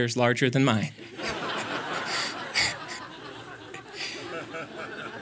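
A young man laughs into a microphone.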